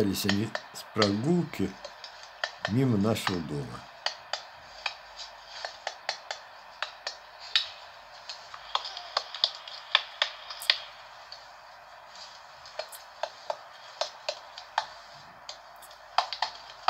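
A hatchet chops into wood with sharp knocks.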